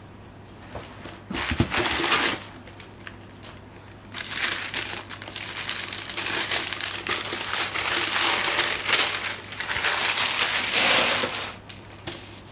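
Plastic mailer bags crinkle and rustle loudly.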